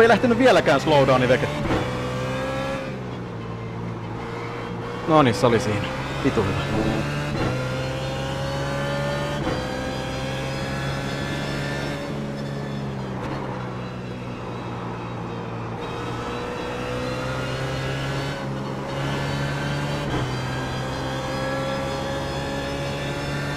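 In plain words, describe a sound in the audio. A race car engine hums steadily, its pitch rising and falling with gear changes.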